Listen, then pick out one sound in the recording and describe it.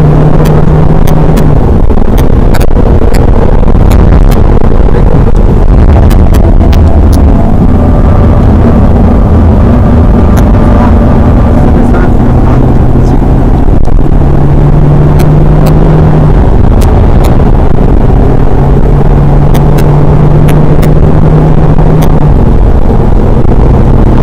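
A car engine roars loudly from inside the cabin, rising and falling as the car speeds around a track.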